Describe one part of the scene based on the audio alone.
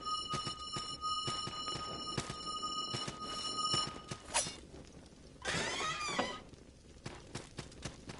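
Sword swings whoosh and strike in quick bursts.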